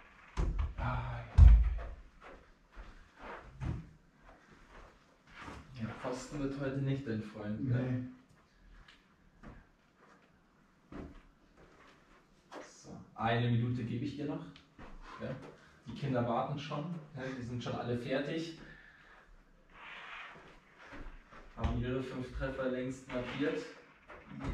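A man speaks calmly in a small echoing room.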